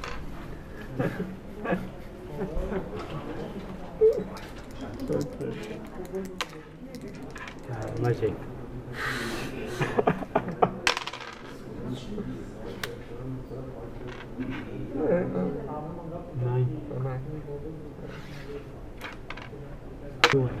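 Backgammon pieces click against a wooden board.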